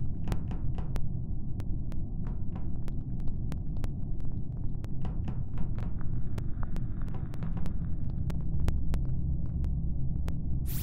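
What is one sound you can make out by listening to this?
Quick light footsteps patter on a metal floor.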